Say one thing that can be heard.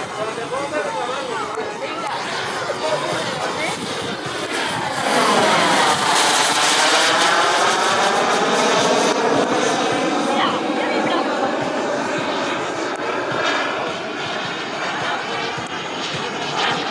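A jet engine roars loudly overhead, rising as it nears and sweeping in pitch as it passes.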